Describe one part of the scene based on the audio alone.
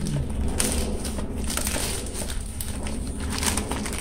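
Cardboard scrapes against plastic as a box slides out of a bag.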